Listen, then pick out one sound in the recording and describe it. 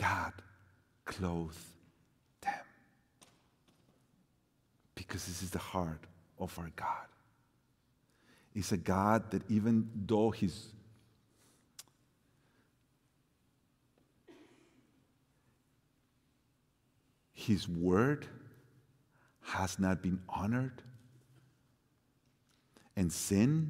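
A middle-aged man speaks with animation into a microphone, with pauses.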